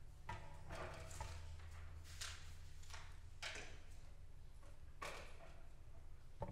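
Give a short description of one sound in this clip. A young woman speaks calmly into a microphone in a large echoing hall.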